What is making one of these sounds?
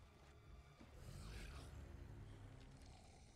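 A creature speaks in a deep, growling voice.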